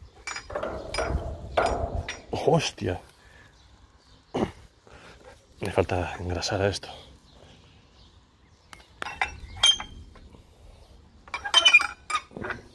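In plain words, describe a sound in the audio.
Metal gears clatter and click as a winch handle turns.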